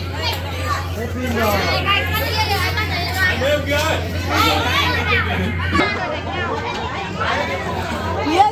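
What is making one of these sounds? Many young children chatter and shout excitedly close by.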